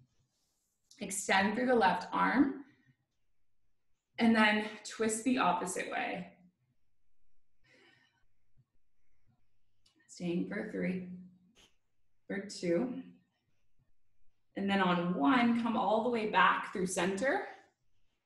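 A young woman speaks calmly and clearly close to the microphone, giving instructions.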